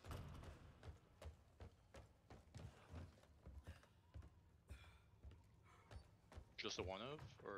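Footsteps thud on a wooden floor at a steady walking pace.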